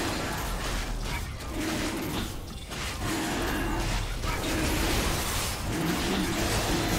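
Magical spell effects whoosh and crackle.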